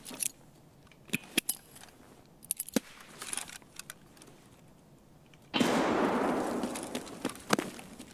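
A rifle rattles and clicks as it is handled.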